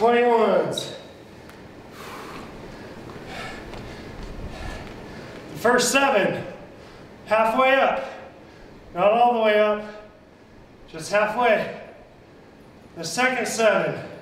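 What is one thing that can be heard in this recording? A man speaks energetically through a microphone.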